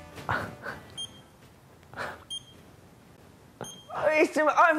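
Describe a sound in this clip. An electronic device beeps three times with short high tones.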